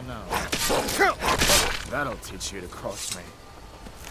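A sword strikes flesh with heavy blows.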